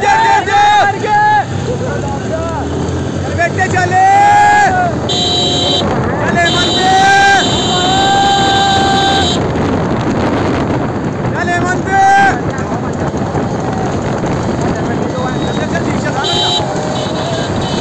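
A motorcycle engine runs and revs nearby.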